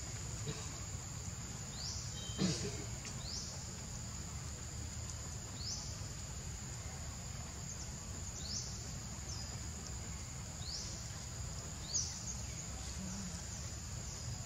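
Dry leaves rustle as a small monkey shifts about.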